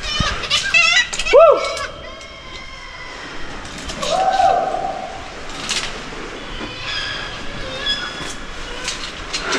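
Water laps and sloshes against rock in an echoing cave.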